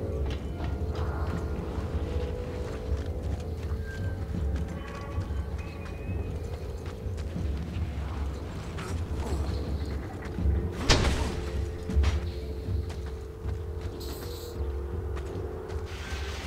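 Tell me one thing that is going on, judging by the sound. Footsteps run over gravel.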